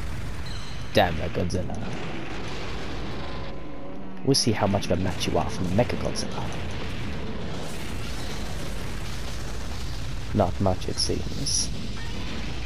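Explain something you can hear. Heavy blows land with deep crashes and thuds.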